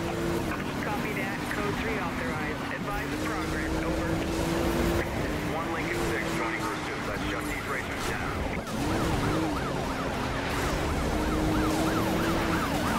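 A police siren wails rapidly.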